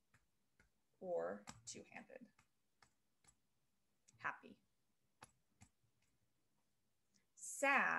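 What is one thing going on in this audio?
A woman speaks calmly and close to a microphone, in short bursts.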